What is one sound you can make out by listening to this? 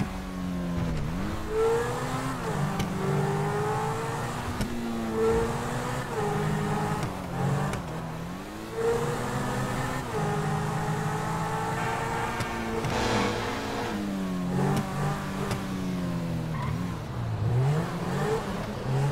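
A sports car engine roars, revving up and dropping again and again as it shifts gears.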